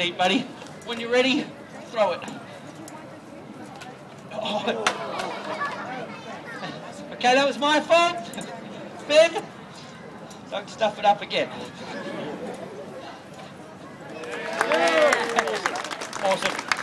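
A young man talks loudly and with animation to a crowd outdoors.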